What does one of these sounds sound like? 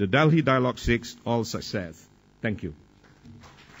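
A middle-aged man speaks calmly into a microphone, heard through loudspeakers.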